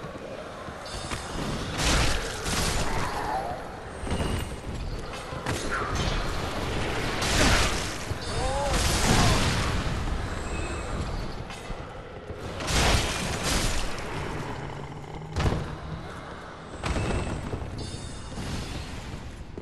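A sword swishes through the air in sharp bursts.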